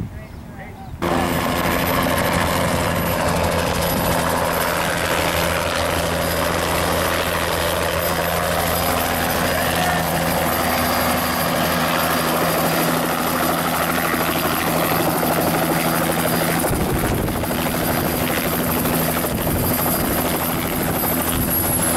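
A helicopter roars loudly close by.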